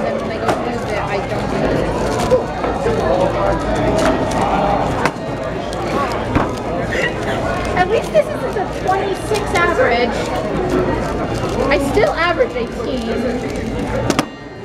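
A plastic puzzle cube clicks and clatters as its layers are turned fast.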